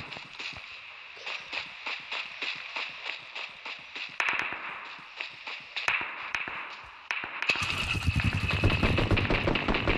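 Quick footsteps patter on grass and dirt.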